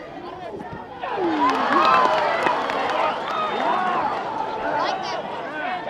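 Spectators cheer from the sideline in the distance.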